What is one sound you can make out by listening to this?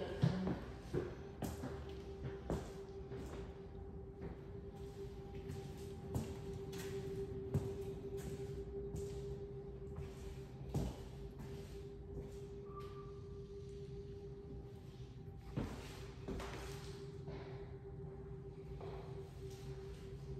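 Footsteps walk softly across a hard floor.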